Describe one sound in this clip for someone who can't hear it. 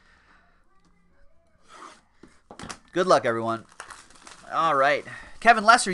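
Plastic wrap crinkles as it is torn.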